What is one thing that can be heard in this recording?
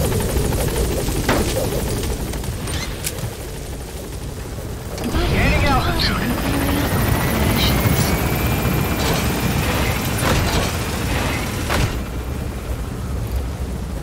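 Strong wind blows and roars.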